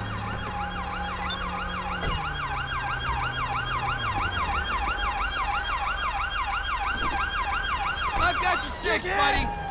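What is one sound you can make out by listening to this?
A police siren wails rapidly nearby.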